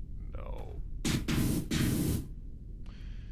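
A spray gun hisses as it blasts water.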